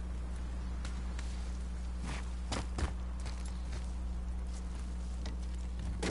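Hands grip and scrape on rock and wood.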